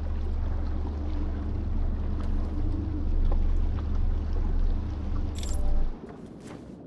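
A small boat's motor hums steadily, then cuts out.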